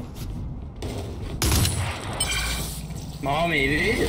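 A magical ability crackles and whooshes.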